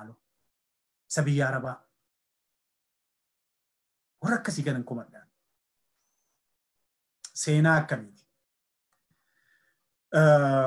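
A man speaks into a microphone with animation, in short bursts with pauses.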